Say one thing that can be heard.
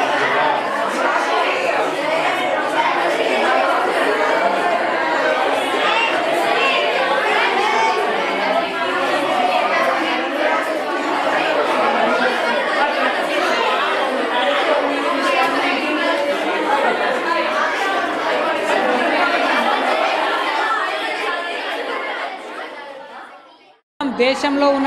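A crowd of young women chatters in a large echoing room.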